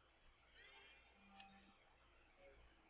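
A bright magical chime shimmers and rings out.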